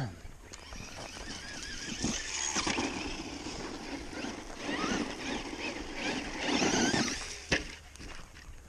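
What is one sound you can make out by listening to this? Tyres crunch and rattle over gravel.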